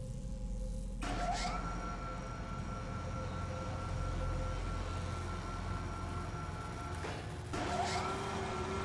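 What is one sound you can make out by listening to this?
A heavy machine lift hums and rumbles as it moves.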